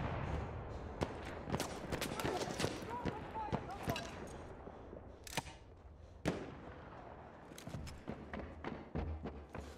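Metal parts click as a gun is handled.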